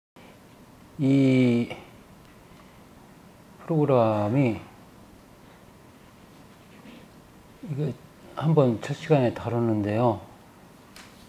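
An elderly man speaks calmly into a microphone in a room, in short phrases with pauses.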